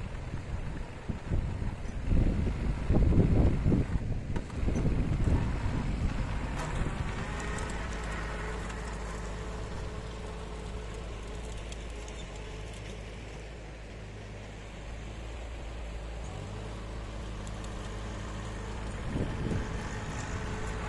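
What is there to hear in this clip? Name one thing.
A rotary tiller churns through soil.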